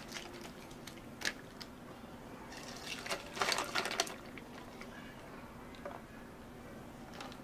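Juice pours into a glass over ice.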